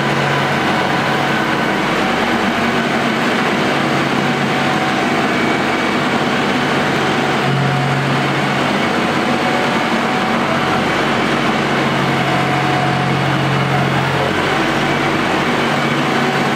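A tractor engine runs and revs nearby.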